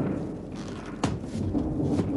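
A suitcase knocks against a wooden surface.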